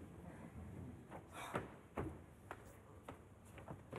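Footsteps tap on a wooden stage.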